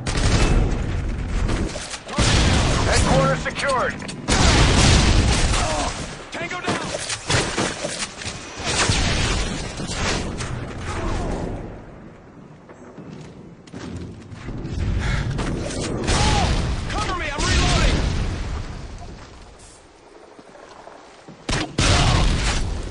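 Rapid gunfire crackles and bangs.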